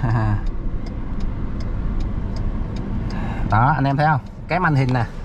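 A car engine hums steadily from inside the cab.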